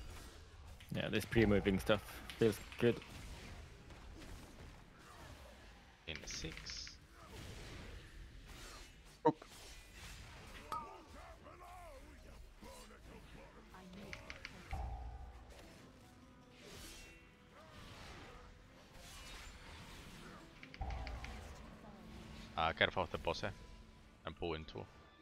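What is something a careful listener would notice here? Magic spells crackle and burst in a fast fantasy battle.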